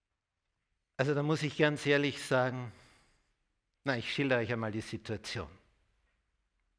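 An older man speaks with animation through a microphone.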